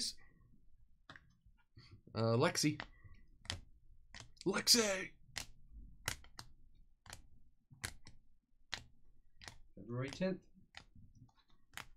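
Plastic card sleeves click and rustle as they are shuffled by hand.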